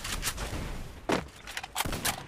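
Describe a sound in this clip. A gun fires a sharp shot.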